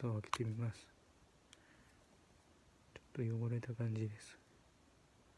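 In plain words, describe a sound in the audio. A man speaks calmly, close up.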